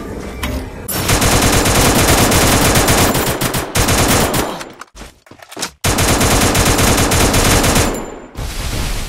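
A rifle fires in rapid, loud bursts.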